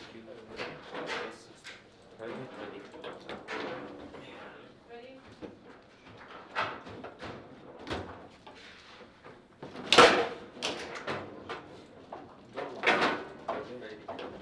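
Metal rods rattle and clack as they are jerked and spun.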